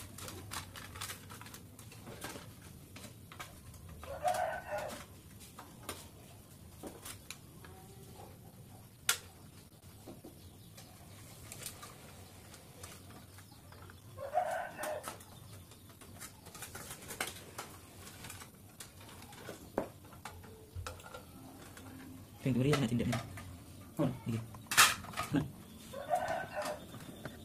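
Plastic sheet crinkles and rustles in hands.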